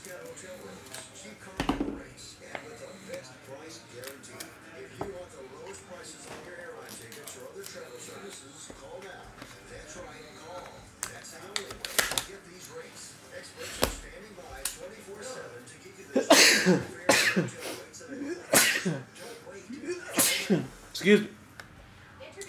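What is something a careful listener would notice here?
Cards and wrappers rustle and tap on a table.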